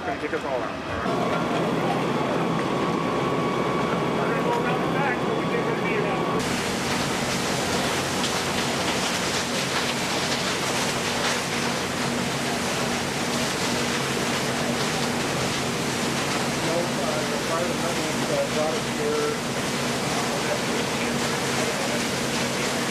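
A heavy machine's engine hums steadily.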